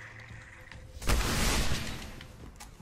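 A heavy punch lands with a thump.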